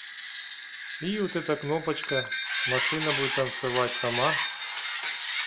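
A toy robot plays a warbling electronic sound effect through a small speaker.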